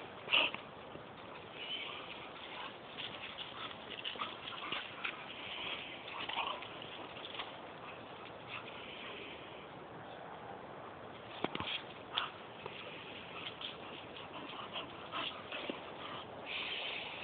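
Two dogs growl playfully as they tussle.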